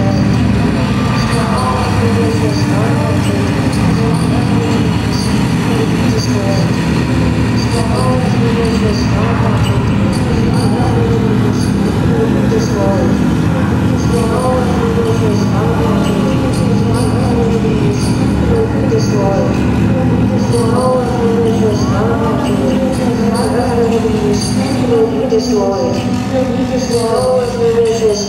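A band plays loud live music in a large echoing hall.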